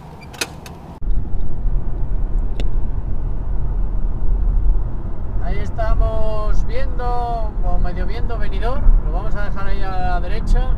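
A car drives along a road with a steady low rumble.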